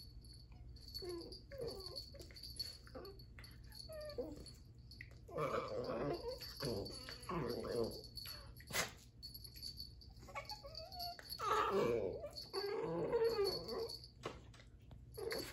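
Two puppies growl and yap playfully as they wrestle.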